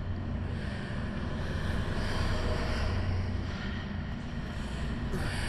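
A deep magical drone hums and swirls steadily.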